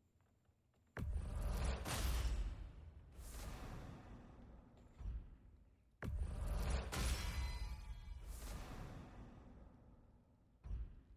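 A deep rumbling whoosh swells and fades away.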